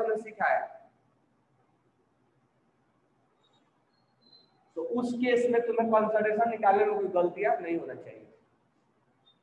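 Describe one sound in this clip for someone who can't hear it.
A man speaks close through a clip-on microphone, explaining.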